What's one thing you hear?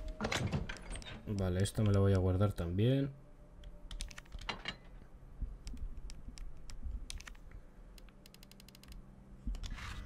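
Menu selection clicks tick quickly.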